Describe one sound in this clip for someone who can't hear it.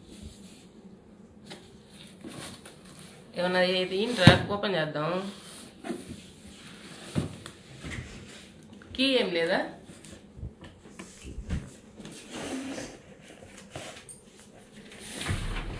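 A cardboard box rustles and scrapes as hands handle and open it.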